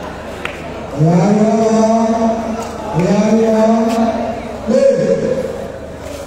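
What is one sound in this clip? A crowd of spectators cheers and chants loudly.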